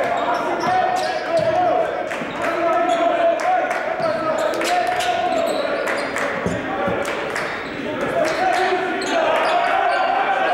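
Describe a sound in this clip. A small crowd murmurs and calls out in a large echoing gym.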